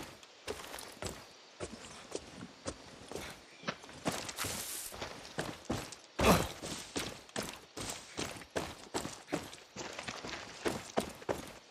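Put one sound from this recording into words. Leaves and branches rustle as someone pushes through brush.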